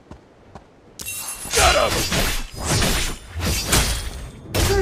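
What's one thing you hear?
Game attack effects crackle and blast in quick bursts.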